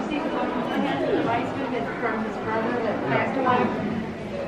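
Adult men and women chatter nearby in a busy indoor space.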